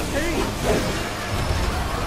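A magical blast bursts with a bright crackle.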